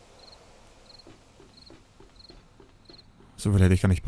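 Footsteps tap steadily on a hollow walkway.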